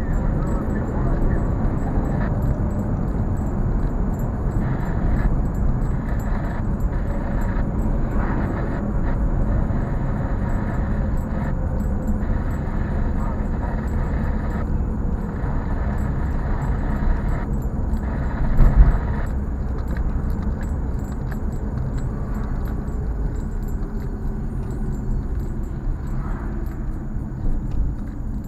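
A car engine hums steadily from inside as the car drives along.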